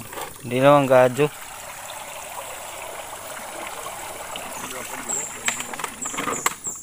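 A stream flows gently over rocks.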